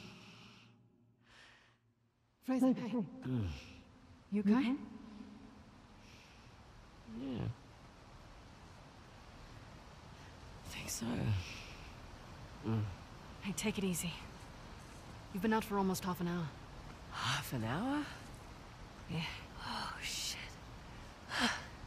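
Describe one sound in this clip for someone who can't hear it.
A young woman groans and answers weakly.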